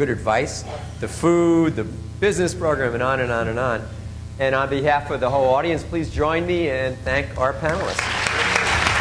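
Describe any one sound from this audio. An elderly man speaks through a microphone in a large echoing hall.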